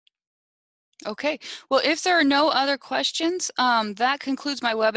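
A woman speaks calmly and clearly into a close microphone, as if on an online call.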